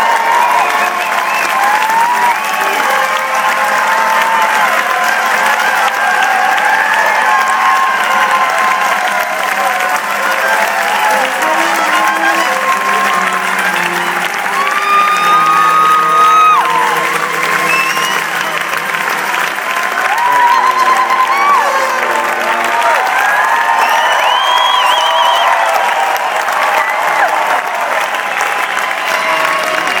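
A crowd cheers and claps loudly.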